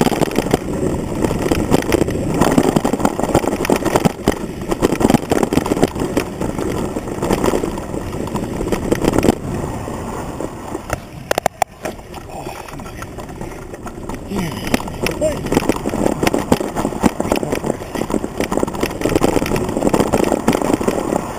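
A mountain bike rolls and rattles over a rough dirt trail.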